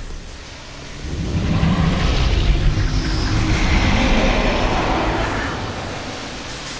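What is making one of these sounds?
An electric blast crackles and hums loudly.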